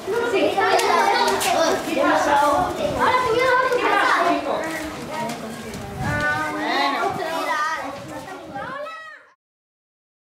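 A young woman speaks gently to a small child close by.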